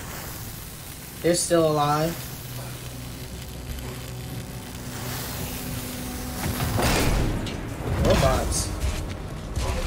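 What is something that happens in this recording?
A cutting torch hisses and crackles with sparks.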